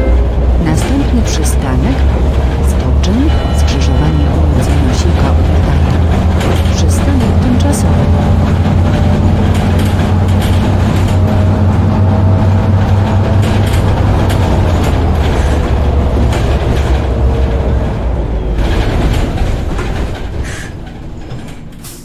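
A bus engine hums steadily and fades as the bus slows to a stop.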